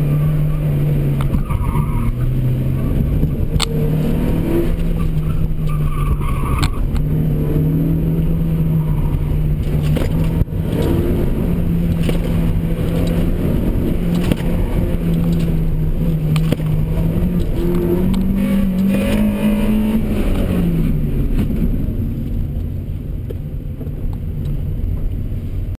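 A car engine drones and revs steadily, rising in pitch and then dropping.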